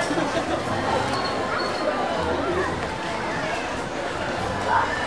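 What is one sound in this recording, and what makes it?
A crowd of women and men chatter close by.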